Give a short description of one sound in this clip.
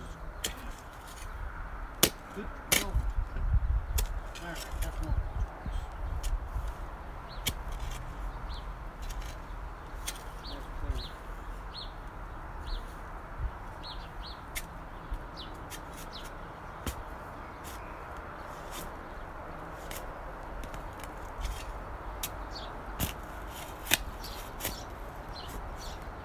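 A shovel digs and scrapes into dry soil.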